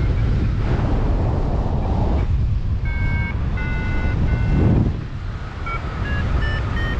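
Strong wind rushes and buffets loudly, as if outdoors high in the air.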